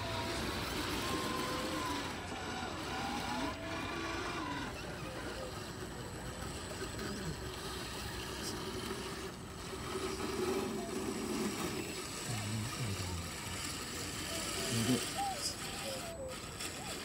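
Toy truck tyres scrape and grind on rock.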